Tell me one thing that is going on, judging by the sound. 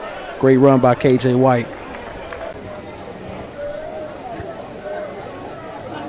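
A stadium crowd murmurs and cheers in the distance.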